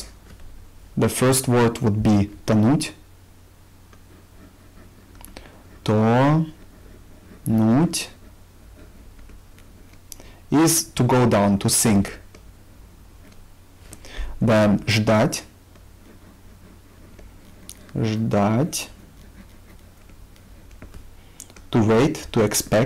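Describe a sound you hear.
A young man speaks calmly and slowly into a close microphone, with long pauses.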